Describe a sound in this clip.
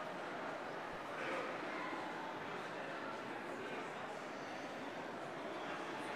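Footsteps walk across a hard floor in a large echoing room.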